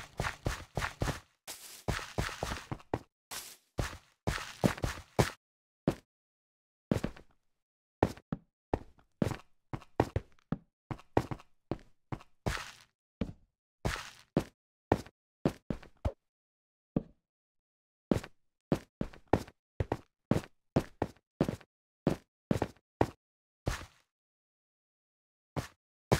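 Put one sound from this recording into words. Blocks crunch and thud as they are dug out and placed, in quick repeated bursts.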